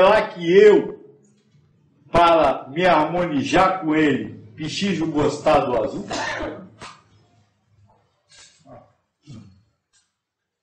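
An elderly man speaks calmly and close by, pausing between phrases.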